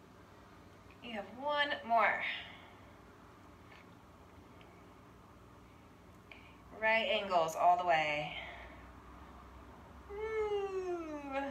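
A woman speaks calmly in short phrases nearby.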